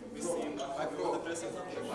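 A crowd of people chatters in a large hall.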